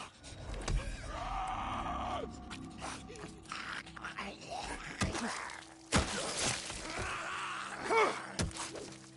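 A creature screeches and snarls.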